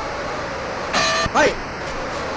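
A boxing bell rings once.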